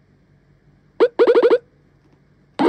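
A short electronic jingle plays as a game starts.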